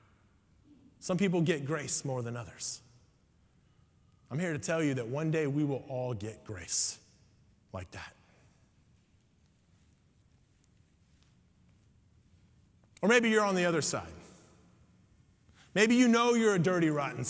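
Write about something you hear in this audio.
A man speaks with expression into a microphone in an echoing hall.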